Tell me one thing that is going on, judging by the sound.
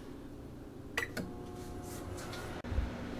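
Microwave buttons beep.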